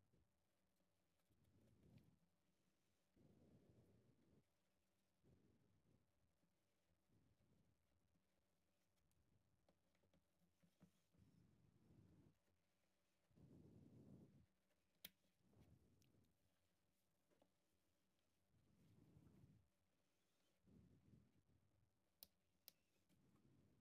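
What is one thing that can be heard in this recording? A craft knife scrapes and cuts into a small piece of wood.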